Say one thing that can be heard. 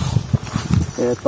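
Soil and sand pour and patter onto dry ground.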